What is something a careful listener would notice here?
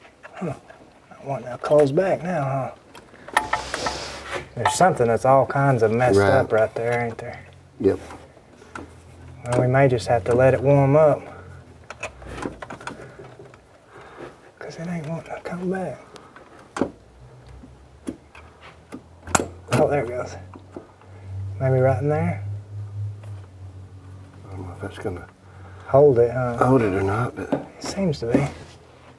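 Tools clink against metal parts of an engine.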